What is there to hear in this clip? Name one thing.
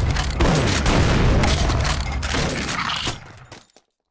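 A heavy gun fires in rapid, loud blasts.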